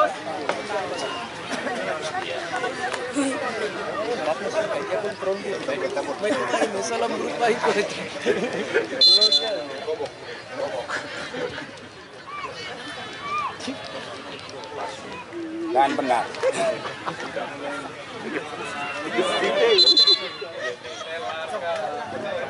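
A large outdoor crowd chatters and cheers loudly, rising in bursts.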